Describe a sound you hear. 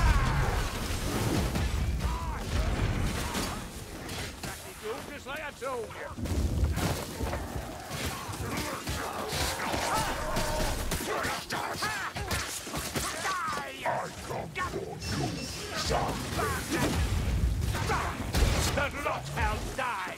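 Blades slash and strike with sharp metallic hits.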